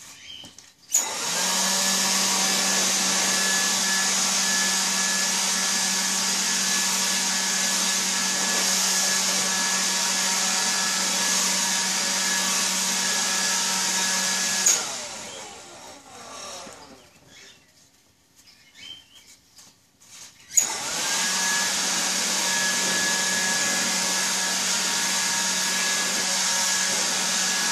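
An electric leaf blower whirs loudly with a steady, high rushing roar, stops, then starts again.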